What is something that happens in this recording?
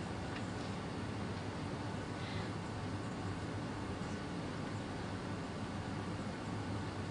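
Chalk taps and scratches on a blackboard.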